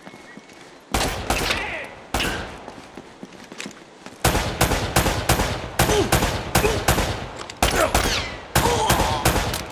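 Gunshots fire rapidly in loud bursts.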